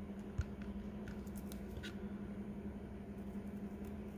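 A screwdriver scrapes and turns a small screw.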